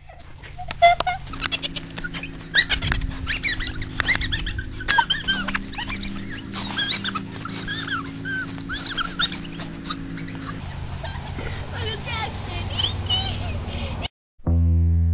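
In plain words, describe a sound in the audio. A young boy shouts and laughs outdoors.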